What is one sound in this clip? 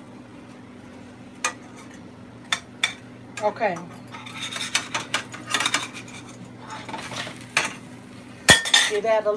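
A metal spatula scrapes and taps against a frying pan.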